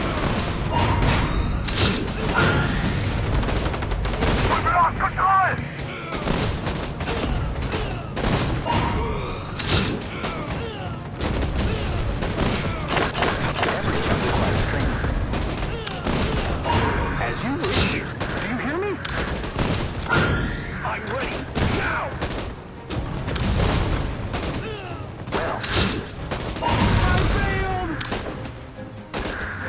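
Gunfire and explosions crackle and boom in a battle game.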